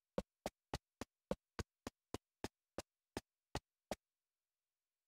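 Footsteps thud quickly on dirt.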